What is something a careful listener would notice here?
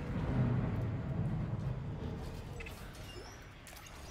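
A metal locker door swings open.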